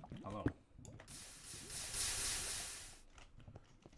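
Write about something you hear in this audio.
Water gushes out and splashes briefly.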